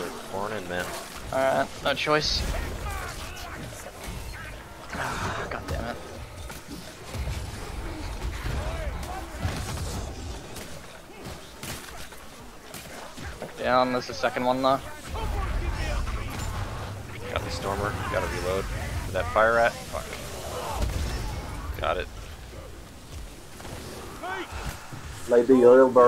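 Blades slash and thud into bodies.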